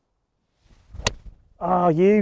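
A golf club strikes a ball with a sharp click.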